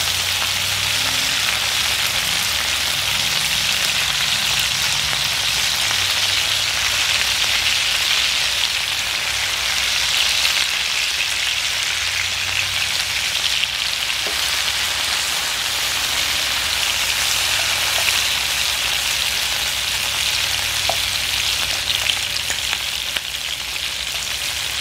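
A spatula scrapes and knocks against a frying pan.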